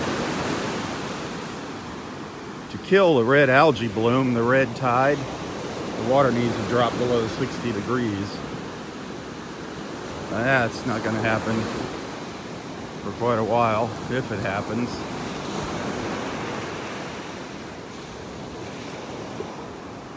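Waves wash onto a sandy shore outdoors.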